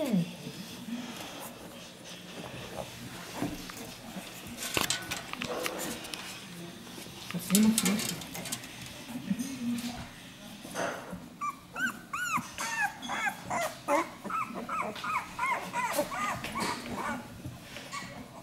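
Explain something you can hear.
Puppies grunt softly while crawling.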